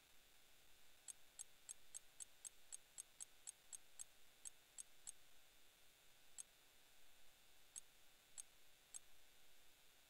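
Short electronic ticks sound in quick succession, then a few more spaced apart.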